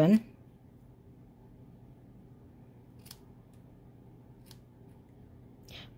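Scissors snip through a ribbon.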